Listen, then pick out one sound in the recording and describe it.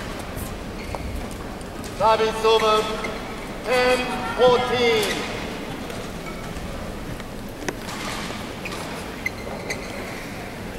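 A shuttlecock is struck with a racket, its crisp hits echoing in a large hall.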